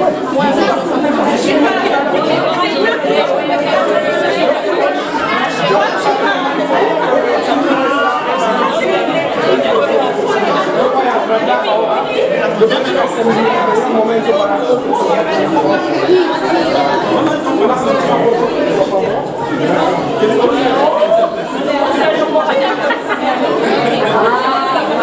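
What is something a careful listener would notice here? A crowd of people chatter all around in an echoing room.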